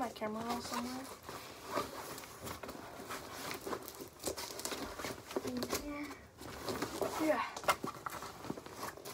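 Items rustle and knock as they are handled.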